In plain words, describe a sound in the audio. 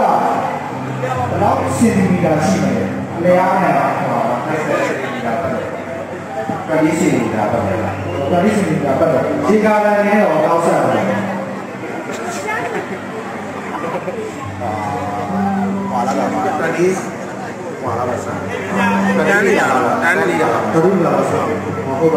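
A man speaks calmly into a microphone through a loudspeaker.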